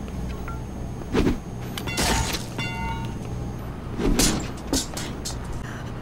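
A blade swishes through the air and strikes with sharp thuds.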